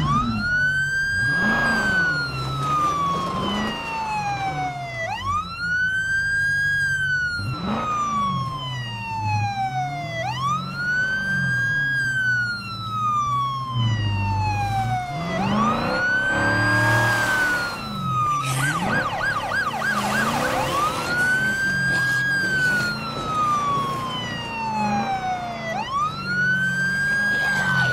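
A car engine hums as a car drives slowly.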